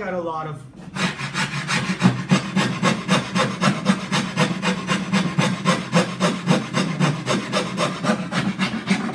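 A gouge scrapes and shaves wood in quick, steady strokes.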